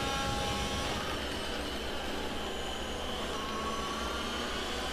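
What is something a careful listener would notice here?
A racing car engine drops in pitch as the car brakes for a corner.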